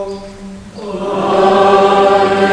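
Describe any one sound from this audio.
A congregation sings a short response together.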